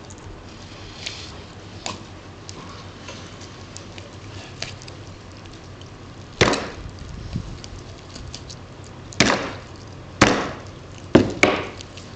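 A knife cuts through poultry skin and flesh.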